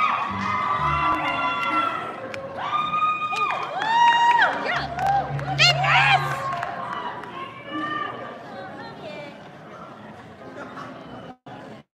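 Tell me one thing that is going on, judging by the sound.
A choir of young men and women sings in a large echoing hall.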